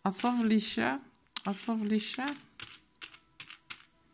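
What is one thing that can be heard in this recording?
Small metal charms clink together in a metal bowl.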